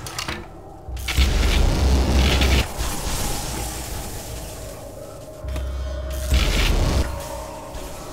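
A weapon fires a loud, roaring energy blast.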